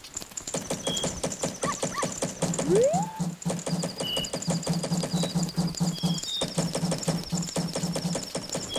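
Game music plays with a steady beat.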